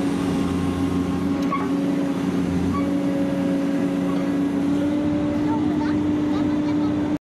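Metal clanks and scrapes as an excavator arm works.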